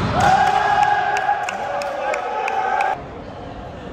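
A referee's whistle blows one long, steady blast in an echoing hall.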